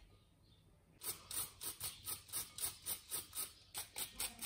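A small grater scrapes rapidly over a bowl.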